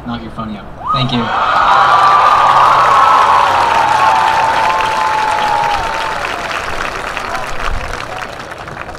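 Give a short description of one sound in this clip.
A large crowd cheers and applauds loudly, then the noise slowly dies down.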